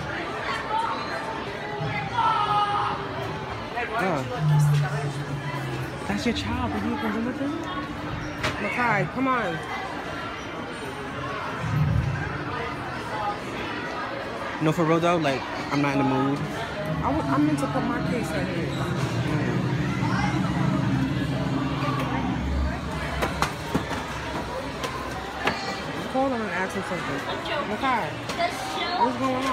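A crowd of shoppers chatters in the background.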